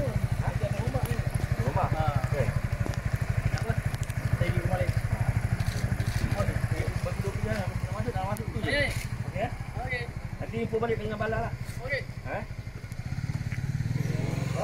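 A small motorcycle engine idles with a throbbing pulse.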